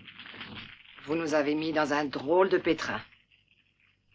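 A young man speaks into a handheld radio.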